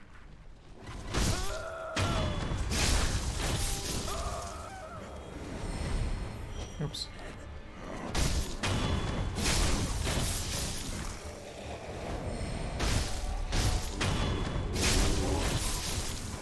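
Swords slash and strike with loud, heavy impacts.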